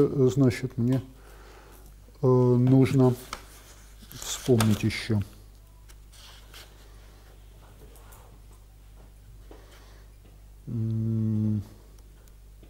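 An elderly man speaks haltingly in an echoing room, with long pauses.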